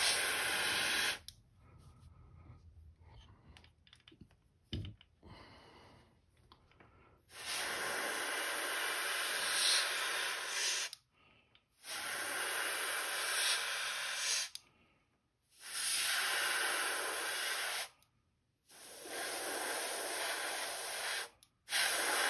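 An airbrush hisses in short bursts, spraying paint.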